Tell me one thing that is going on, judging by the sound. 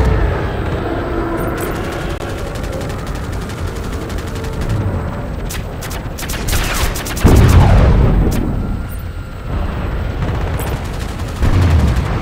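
A helicopter engine roars steadily.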